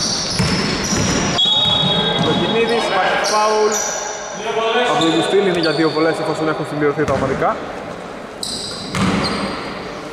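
Sneakers squeak sharply on a wooden court in an echoing gym.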